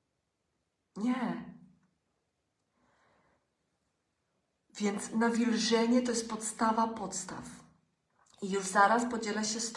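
A middle-aged woman talks close to a microphone, calmly and warmly, with pauses.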